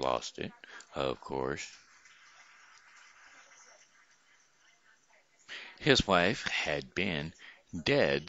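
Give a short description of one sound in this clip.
An older man speaks calmly and closely into a headset microphone, with pauses.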